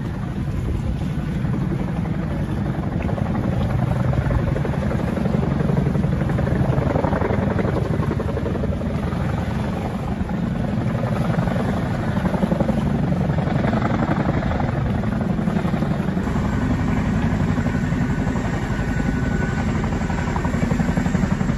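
A helicopter's rotor thumps steadily over open water.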